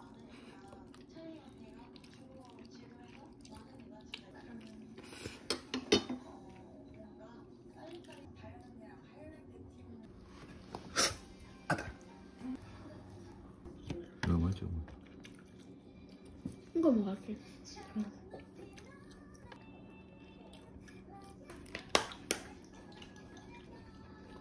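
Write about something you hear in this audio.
Metal utensils clink against a pan and a metal plate.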